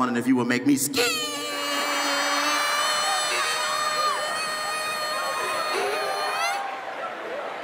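A large crowd laughs and cheers.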